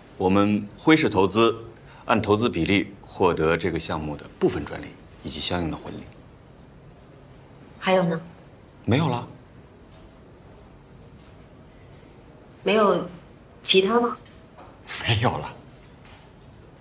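A middle-aged man speaks calmly and earnestly nearby.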